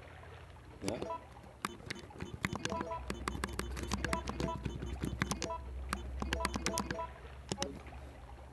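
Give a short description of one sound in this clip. Short electronic beeps sound as menu items change.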